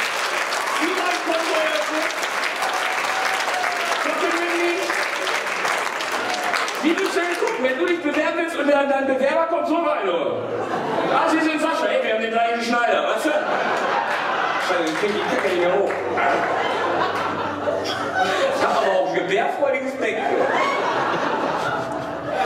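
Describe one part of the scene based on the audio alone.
Men speak loudly on a stage in a large echoing hall.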